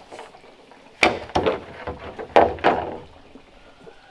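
A long bamboo pole knocks and scrapes as it is dragged over the ground.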